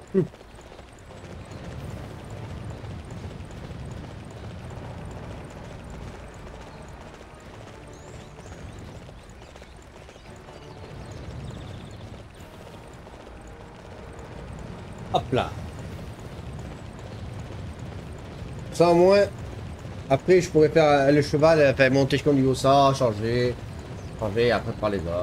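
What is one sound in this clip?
A horse's hooves pound steadily at a gallop.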